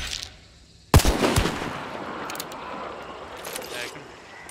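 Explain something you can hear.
A rifle fires with a loud, echoing boom.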